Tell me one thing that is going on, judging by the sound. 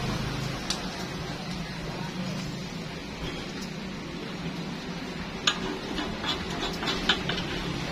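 A spoon clinks against a metal pan.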